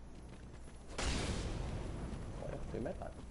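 A blade swishes and strikes with a loud crash.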